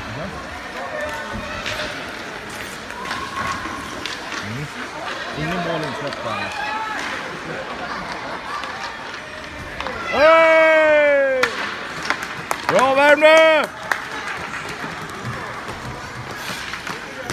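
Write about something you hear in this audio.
Skate blades scrape across the ice in an echoing hall.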